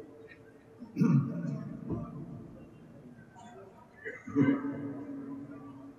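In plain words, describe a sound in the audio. An elderly man calls out briefly through a microphone between chants.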